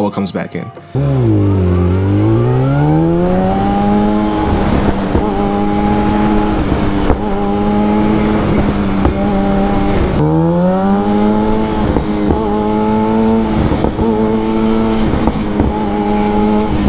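A motorcycle engine revs up and runs steadily close by.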